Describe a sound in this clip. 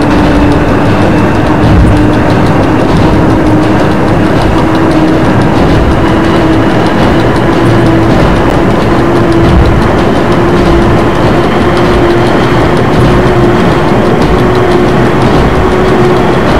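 Train wheels rumble and click over the rails.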